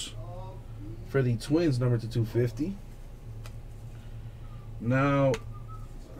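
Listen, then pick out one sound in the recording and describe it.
Trading cards rustle and slide as they are handled.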